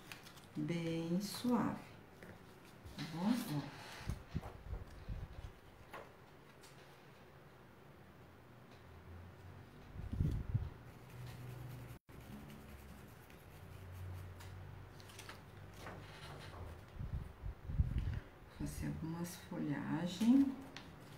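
A plastic sheet crinkles as it is handled.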